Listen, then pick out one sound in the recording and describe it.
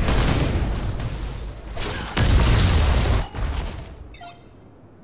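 Loud blasts and crackling of a fight ring out.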